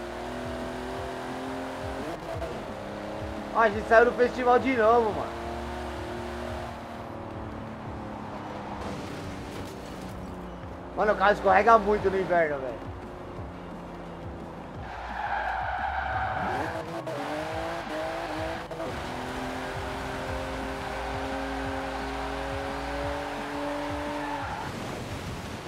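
A car engine roars, rising and falling in pitch as the gears change.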